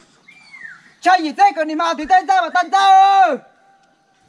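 A young man sings out loudly nearby.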